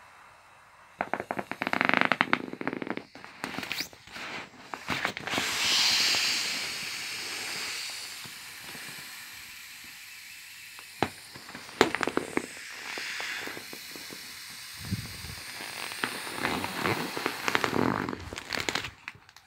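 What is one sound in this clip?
A hand rubs and squeezes crinkling inflatable plastic.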